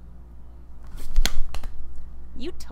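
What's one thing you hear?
A young woman claps her hands together.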